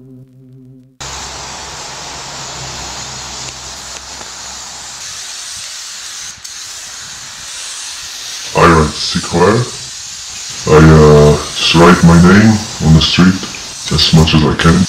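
A spray can hisses steadily against a wall.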